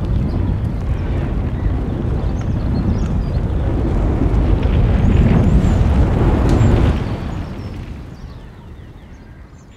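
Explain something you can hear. Flames roar and crackle loudly, then fade away.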